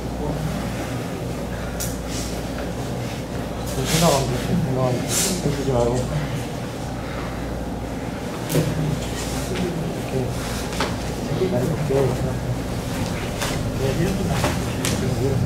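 Two people grapple, their heavy cloth jackets rustling and scuffing.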